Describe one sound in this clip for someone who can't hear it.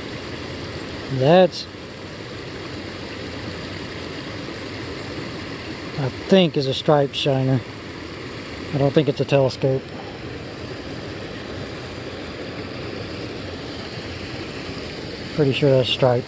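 A shallow stream trickles gently.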